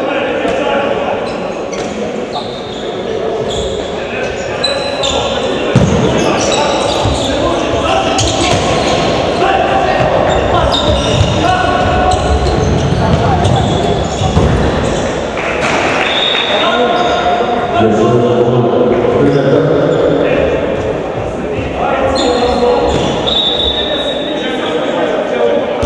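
Young men shout to each other across a large echoing hall.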